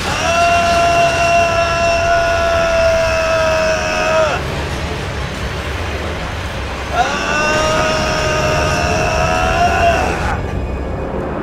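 Large spinning blades whir and grind loudly.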